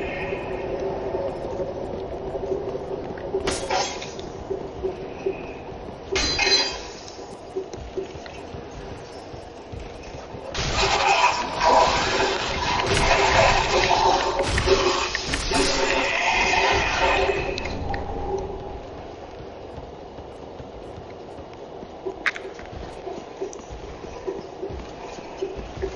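Armoured footsteps clank on stone and wood.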